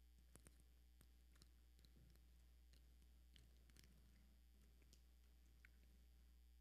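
A man fumbles with a small object close to a microphone, making faint clicks and rustles.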